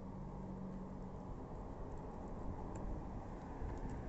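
A dog's claws tap on a wooden deck.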